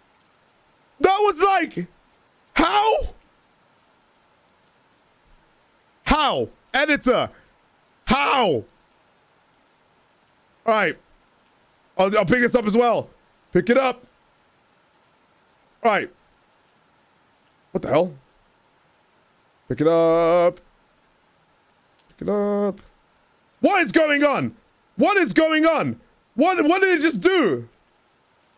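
A young man speaks with animation in short bursts, close to a microphone.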